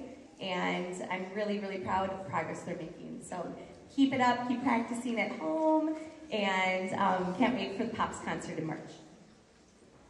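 A woman speaks to an audience through a microphone in a large hall.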